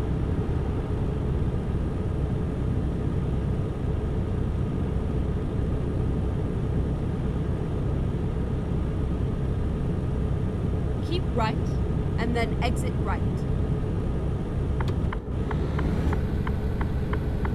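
Tyres roll on asphalt with a low rumble.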